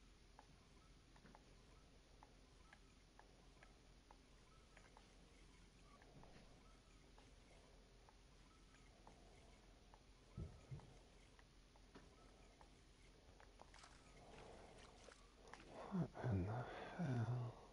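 A fishing reel clicks softly as its line is wound in.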